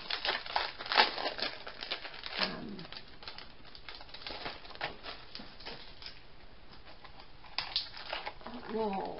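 Plastic sheets crinkle and rustle as hands handle them.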